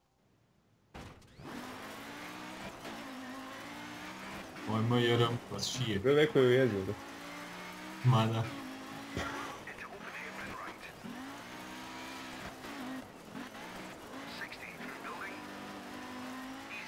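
A car engine revs up and down as it races.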